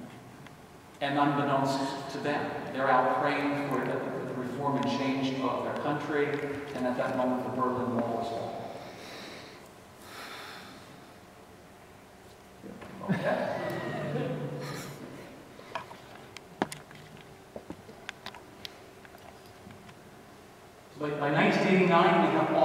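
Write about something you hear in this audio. An older man sings in a full voice in a large echoing hall.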